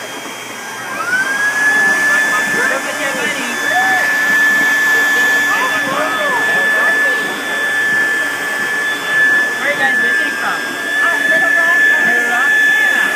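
A machine hums with a steady high whine.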